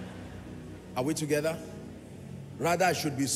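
A man speaks loudly through a microphone in a large hall.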